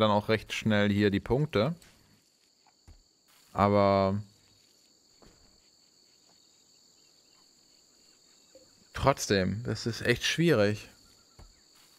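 A man speaks casually into a close microphone.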